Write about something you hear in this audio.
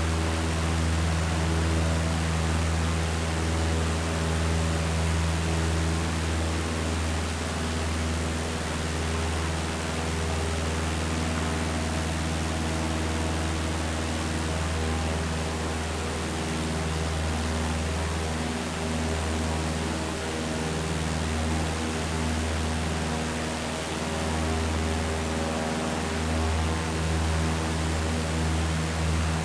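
Wind rushes steadily past the plane.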